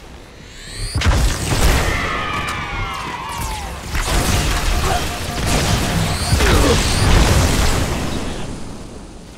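An energy rifle fires in rapid bursts.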